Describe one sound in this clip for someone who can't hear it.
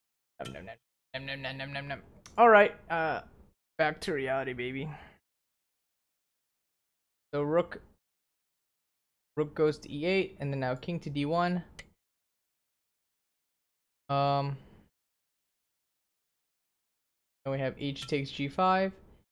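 A young man talks with animation into a close microphone, in short bursts with pauses.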